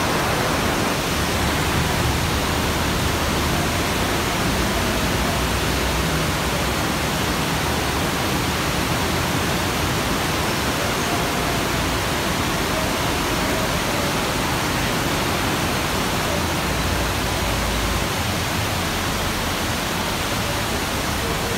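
Traffic rumbles along a wet road below.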